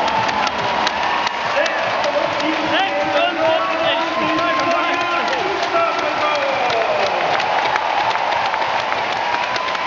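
Nearby spectators talk among themselves.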